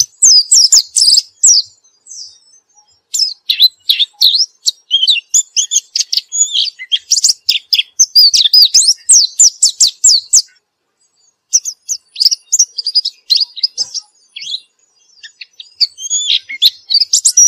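A small bird sings close by in rapid, high warbling trills and chirps.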